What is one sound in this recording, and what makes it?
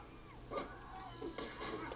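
Blows land with sharp, punchy thuds.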